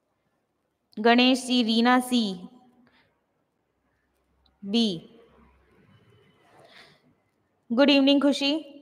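A young woman speaks into a close microphone in short bursts, with pauses between them.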